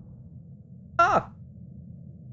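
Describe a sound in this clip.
A young man yelps in a high, sudden cry.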